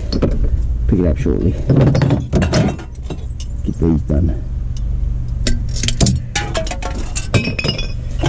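Empty cans and glass bottles clink and rattle against each other close by.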